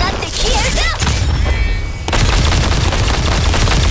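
A heavy cannon fires with loud blasts.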